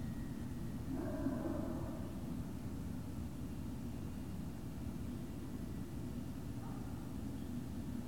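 A dog barks and whines nearby outdoors.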